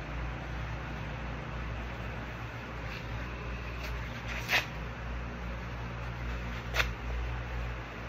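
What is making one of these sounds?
Paper crinkles in a man's hands.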